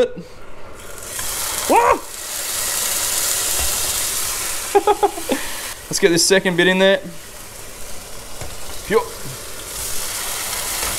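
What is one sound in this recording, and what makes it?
Meat sizzles and hisses in a hot frying pan.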